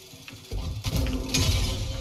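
A lightsaber hums and swooshes through the air.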